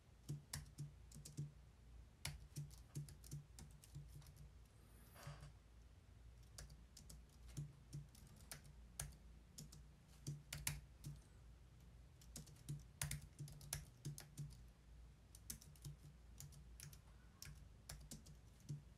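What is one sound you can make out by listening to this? Keyboard keys click in quick, uneven bursts.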